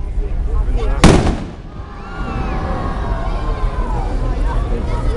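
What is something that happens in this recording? Sparks hiss from a firework.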